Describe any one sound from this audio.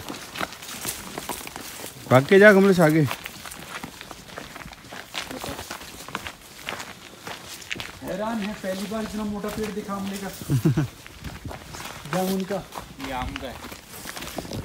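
Footsteps crunch on a dirt trail.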